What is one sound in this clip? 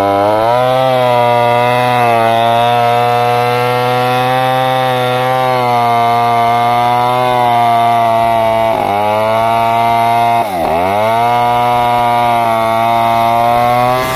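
A chainsaw engine roars loudly and steadily, dipping briefly as it bogs down in the cut.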